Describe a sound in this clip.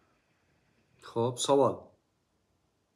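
A man speaks a few words nearby.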